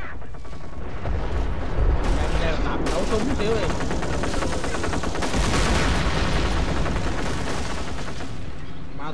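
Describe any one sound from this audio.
Explosions rumble low and heavy.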